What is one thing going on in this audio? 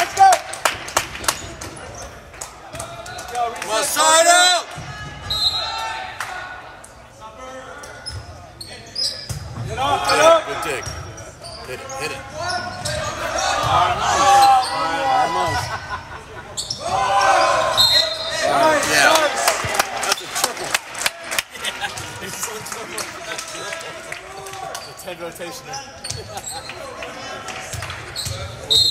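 Volleyball players shout and call to each other in a large echoing gym.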